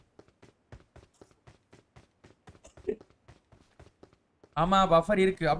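Footsteps patter quickly and evenly on the ground.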